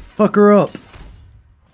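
A zombie groans loudly.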